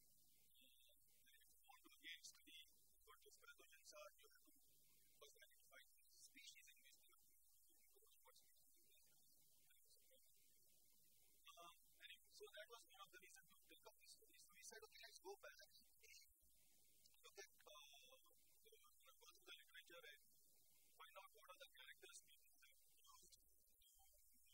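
A man lectures with animation.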